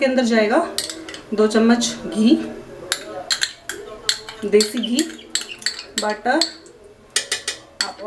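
A metal spoon scrapes and taps against a bowl.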